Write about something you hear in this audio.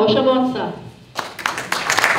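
A woman speaks into a microphone over a loudspeaker.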